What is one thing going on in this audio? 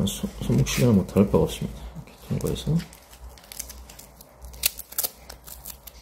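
A fabric strap rustles as it is pulled and fastened.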